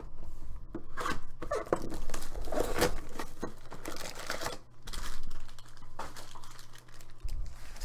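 Plastic wrapping crinkles and rips as a box is opened by hand.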